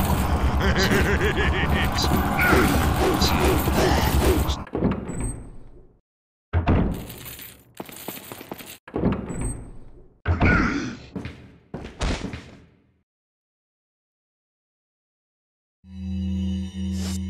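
Footsteps thud on a soft floor.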